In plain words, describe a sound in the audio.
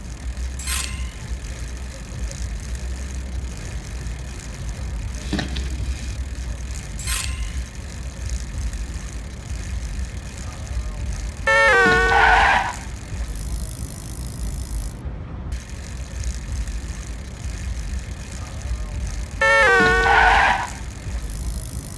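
Bicycle tyres hum steadily on a paved road.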